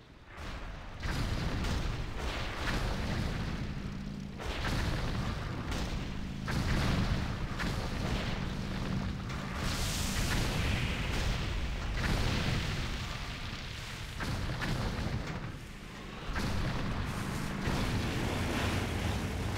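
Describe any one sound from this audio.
Game battle sounds of explosions and clashing weapons play loudly.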